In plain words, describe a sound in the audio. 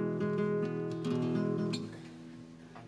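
A guitar strums loud, bright chords that ring out and stop.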